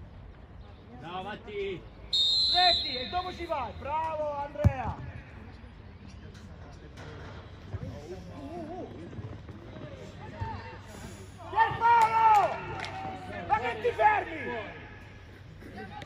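Young players shout to each other across an open outdoor pitch.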